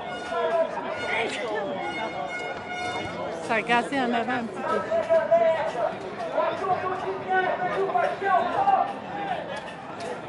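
A man talks loudly nearby.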